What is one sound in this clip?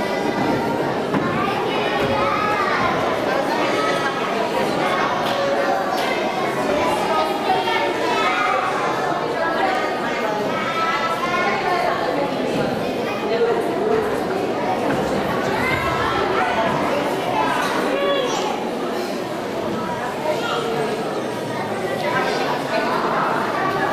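A large choir of young people sings together in an echoing hall.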